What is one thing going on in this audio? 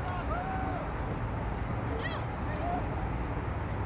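Young women shout to each other across an open field in the distance.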